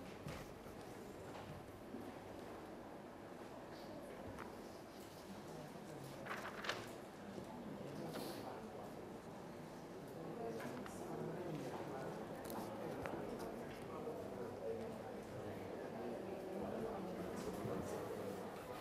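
A young man speaks calmly into a microphone in an echoing room.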